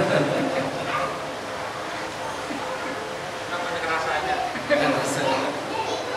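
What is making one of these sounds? A middle-aged man laughs into a microphone.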